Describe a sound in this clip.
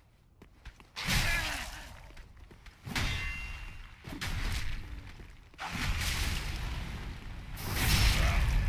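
Blades strike with sharp metallic clangs.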